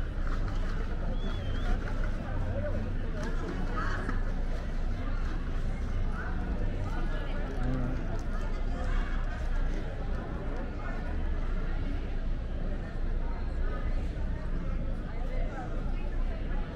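Young women chat and laugh nearby outdoors.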